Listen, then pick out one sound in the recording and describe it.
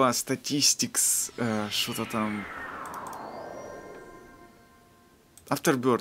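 A shimmering magical whoosh sweeps downward in pitch and fades.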